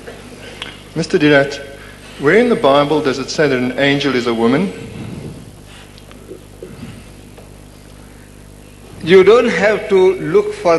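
A man speaks into a microphone, heard through loudspeakers in a large hall.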